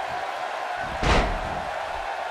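A body thuds heavily onto a wrestling mat.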